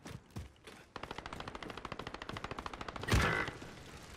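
An assault rifle fires in rapid automatic bursts.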